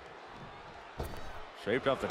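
A wrestler's strike lands with a heavy thud on a wrestling ring's canvas.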